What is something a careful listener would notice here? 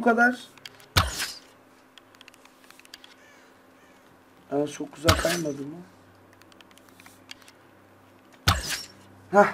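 A bowstring snaps as arrows are loosed.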